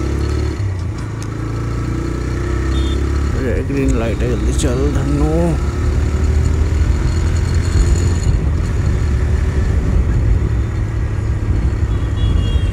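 A motorcycle hums steadily as it rides along.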